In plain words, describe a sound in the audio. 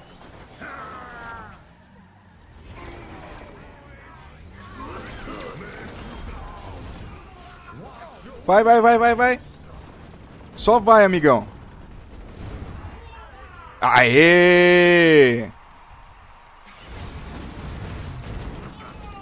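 Laser blasts and explosions crackle in quick bursts.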